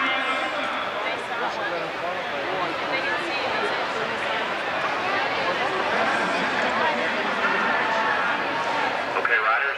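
A crowd chatters and calls out in a large echoing arena.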